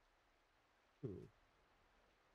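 A young man briefly speaks close to a microphone.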